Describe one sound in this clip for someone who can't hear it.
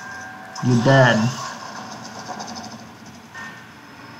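A magic spell hums and shimmers.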